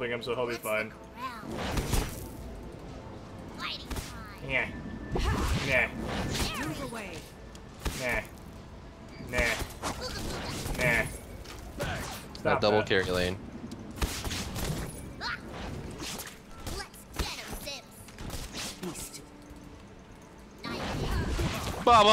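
Magic blasts and weapon hits crack and whoosh in a fast fight.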